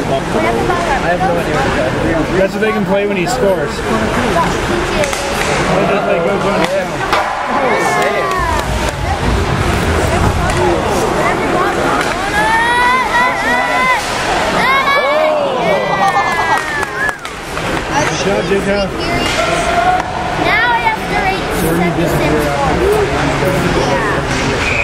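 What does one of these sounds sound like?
Spectators chatter nearby in a large echoing rink.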